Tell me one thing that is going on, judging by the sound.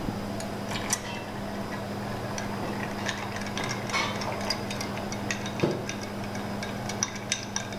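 A bar spoon stirs ice, clinking softly against a mixing glass.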